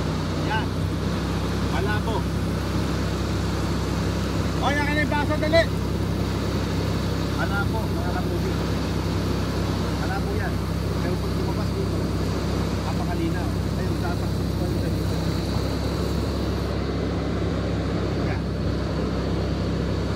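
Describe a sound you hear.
Water gushes from a hose.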